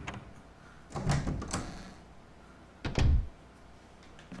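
A door creaks open and thumps.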